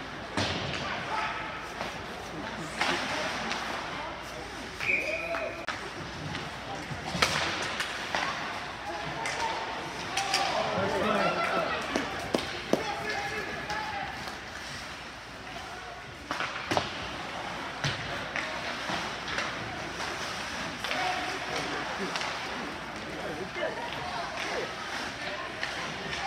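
Sticks and a puck clack and thud against the boards.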